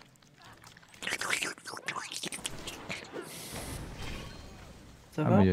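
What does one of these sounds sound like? A magic spell whooshes and sparkles.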